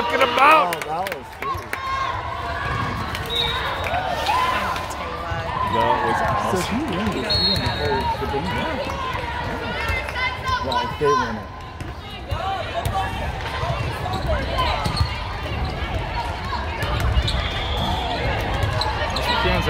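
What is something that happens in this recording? A volleyball thumps off players' arms.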